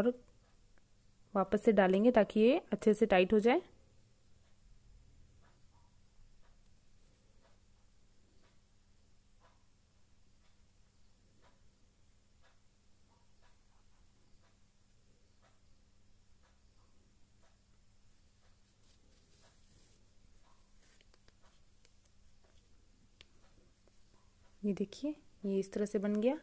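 Knitted wool rustles softly as it is handled.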